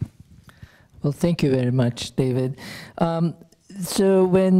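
A middle-aged man speaks calmly into a microphone over loudspeakers in a large hall.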